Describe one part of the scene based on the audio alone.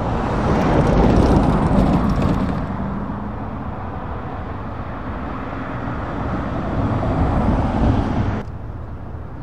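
A van drives past with a rumbling engine and hissing tyres.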